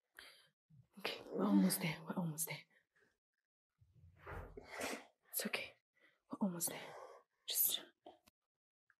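A young woman speaks quietly and weakly, close by.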